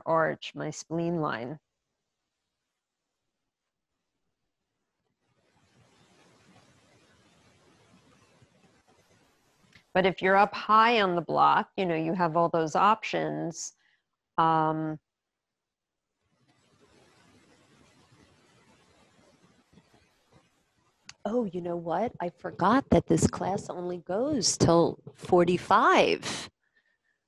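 A woman speaks calmly and gently close to a microphone, guiding slowly with pauses.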